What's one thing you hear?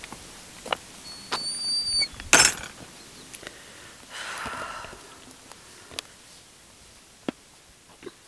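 Footsteps crunch on a gravel path outdoors.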